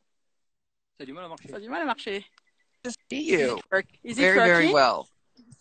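A middle-aged woman talks and laughs over an online call.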